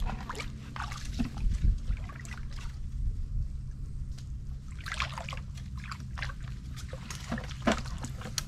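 Dry twigs snap and rustle against a person pushing past.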